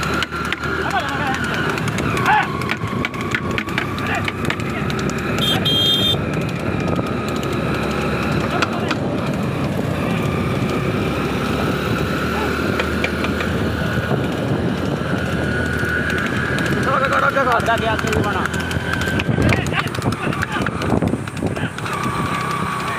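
Hooves clop on the road.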